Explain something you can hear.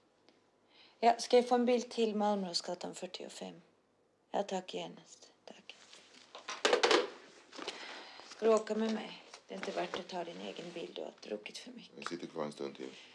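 A young woman speaks on a telephone in a hushed, strained voice, close by.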